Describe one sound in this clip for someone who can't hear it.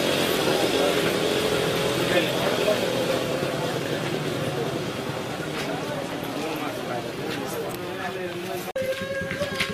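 An elderly woman speaks with emotion close by.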